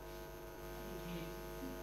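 A man speaks softly through a microphone.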